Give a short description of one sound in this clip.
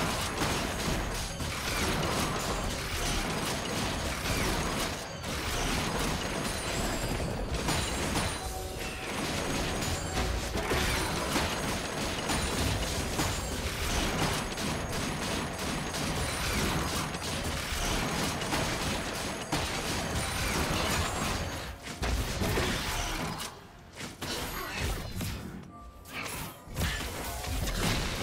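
Game spell effects and combat sounds clash and burst.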